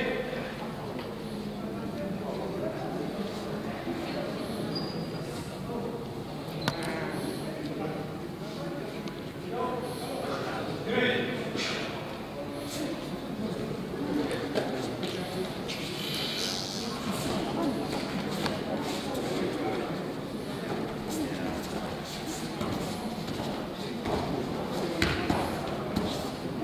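A crowd murmurs throughout in a large echoing hall.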